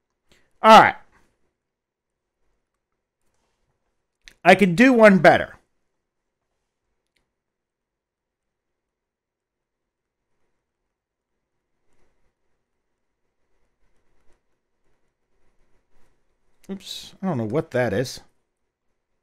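An older man speaks calmly through a headset microphone, in short bursts.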